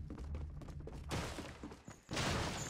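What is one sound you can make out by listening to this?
A wooden door swings open with a creak.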